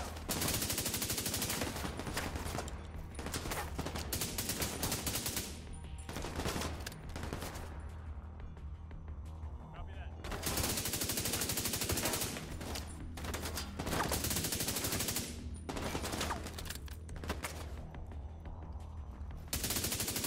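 Rifles fire in rapid, rattling bursts.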